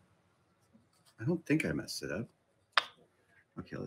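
A wooden block knocks lightly on a workbench.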